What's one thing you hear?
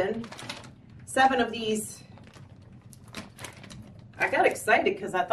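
A plastic-coated fabric bag rustles as a woman handles it.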